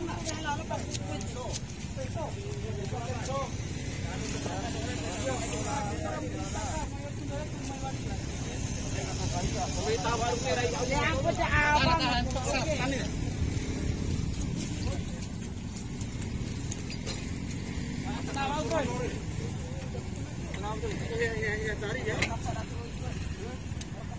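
Several men talk calmly nearby outdoors.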